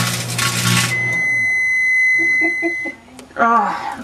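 A microwave oven beeps with a steady high tone.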